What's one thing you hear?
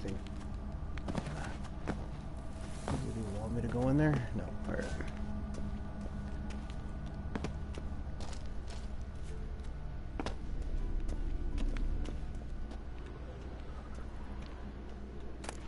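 Footsteps crunch on the ground as someone walks.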